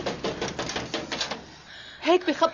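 A door latch rattles and clicks open.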